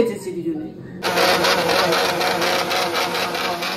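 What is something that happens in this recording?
A mixer grinder whirs loudly.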